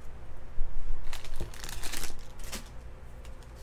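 Trading cards rustle and tap softly as hands handle them.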